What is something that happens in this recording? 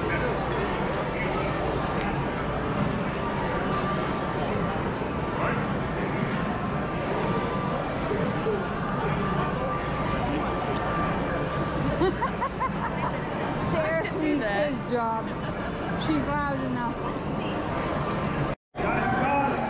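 A crowd of men and women chatters in a large room.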